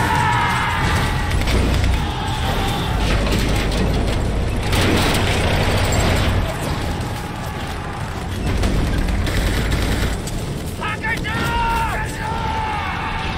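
Many men shout as they charge.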